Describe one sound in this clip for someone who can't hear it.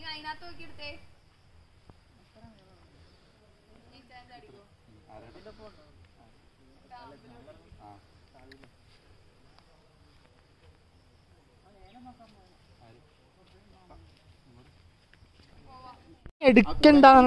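Young men and women chat quietly a short way off.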